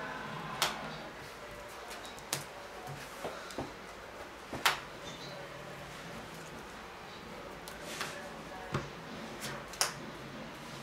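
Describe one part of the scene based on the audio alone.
Cards tap and slap onto a table.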